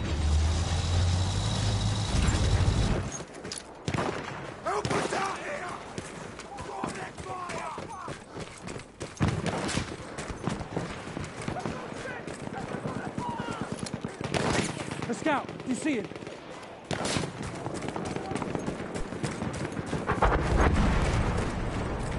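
Gunfire cracks and rattles.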